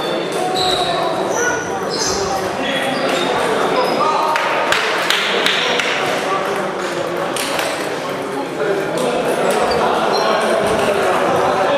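Table tennis balls click on tables and paddles in an echoing hall.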